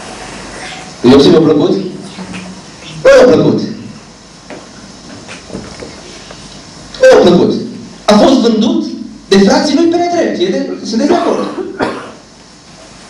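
A young man preaches with emphasis through a microphone and loudspeakers in an echoing hall.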